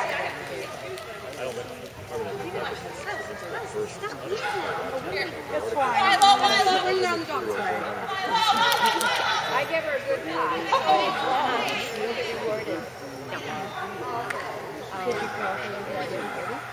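A woman calls out commands to a dog with animation in a large echoing hall.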